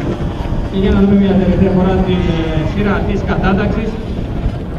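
A racing motorcycle roars past close by.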